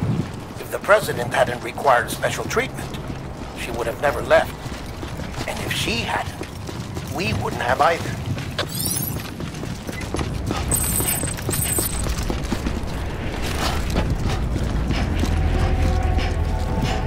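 Footsteps thud quickly on pavement.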